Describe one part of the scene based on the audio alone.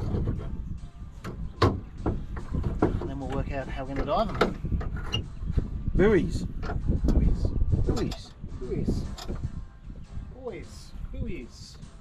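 A boat winch ratchets and clicks as it is cranked.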